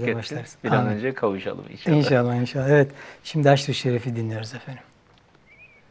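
A man speaks calmly and warmly into a close microphone.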